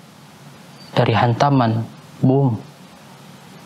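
A young man chants in a melodic voice, close to a microphone.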